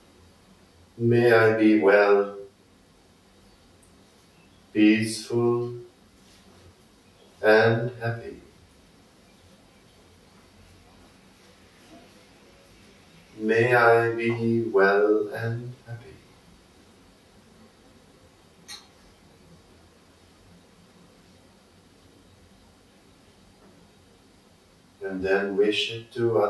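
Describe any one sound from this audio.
An elderly man speaks slowly and calmly nearby, in short phrases with long pauses.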